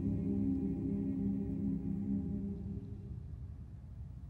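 A large male choir sings a sustained chord that rings out in an echoing hall.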